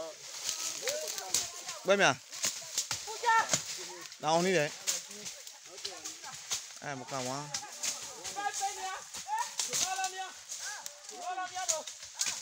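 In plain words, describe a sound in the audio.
Leaves and branches rustle as someone pushes through brush.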